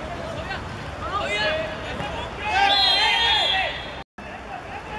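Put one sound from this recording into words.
Young men shout to each other across an outdoor pitch.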